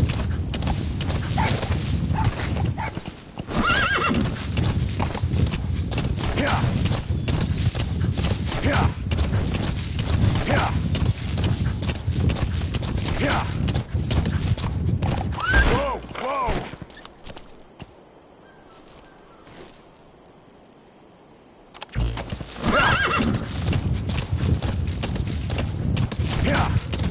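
A horse gallops over rough ground with heavy hoofbeats.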